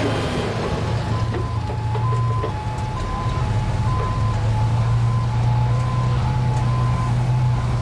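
A second heavy truck's engine idles and rumbles nearby.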